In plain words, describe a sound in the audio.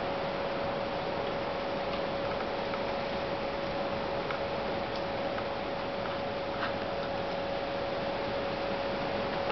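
A deer steps through dry leaves with soft rustles.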